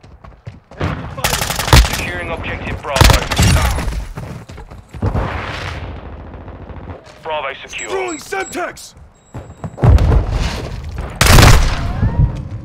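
A rifle fires in loud rapid bursts.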